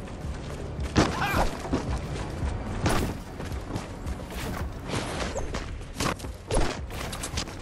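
Building pieces snap into place with sharp knocks.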